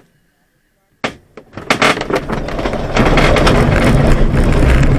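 A glider rattles and bumps as it rolls over rough ground.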